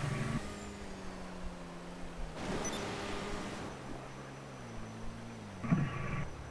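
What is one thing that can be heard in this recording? A jet bike engine hums and slowly drops in pitch.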